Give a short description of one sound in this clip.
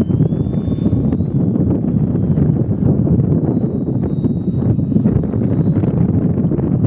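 A small propeller engine whines high overhead.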